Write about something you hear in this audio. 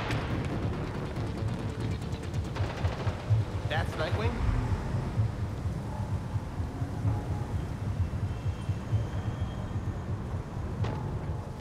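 Rain falls steadily on a wet street.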